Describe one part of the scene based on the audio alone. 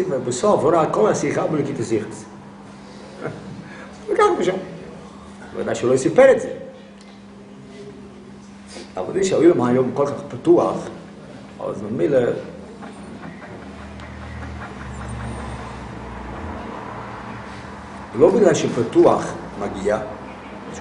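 An elderly man speaks calmly in bursts, with pauses, close by.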